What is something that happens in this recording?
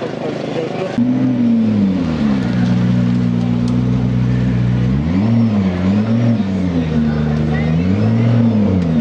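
A sports car engine idles and revs loudly.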